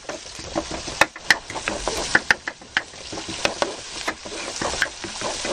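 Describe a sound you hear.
Chopped chillies and garlic sizzle and crackle in hot oil.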